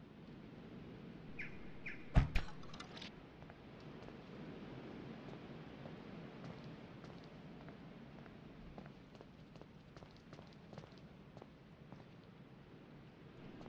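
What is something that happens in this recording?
Waves wash gently onto a shore.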